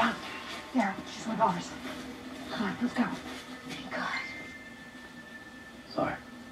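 A woman talks calmly through a television speaker.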